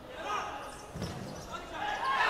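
A ball is kicked with a thump.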